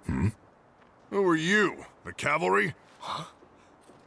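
A young woman speaks sharply and questioningly.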